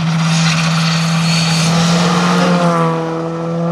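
A rally car engine roars loudly as the car speeds past close by.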